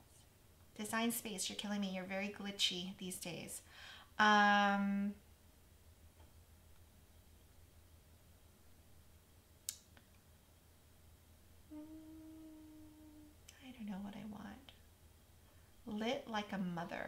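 A woman talks calmly and chattily, close to a microphone.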